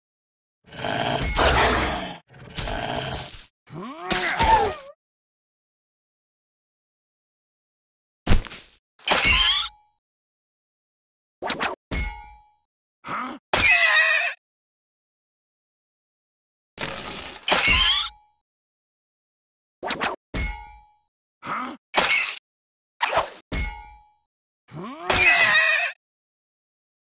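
Sword strikes and spell effects sound in short bursts in a fantasy game's combat.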